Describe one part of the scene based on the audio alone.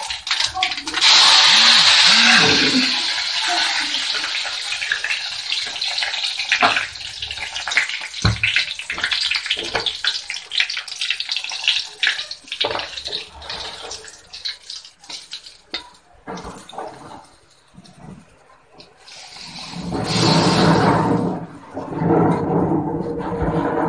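Oil sizzles and hisses in a hot pan.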